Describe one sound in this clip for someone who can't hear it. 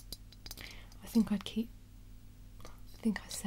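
A young woman speaks a few quiet words close by.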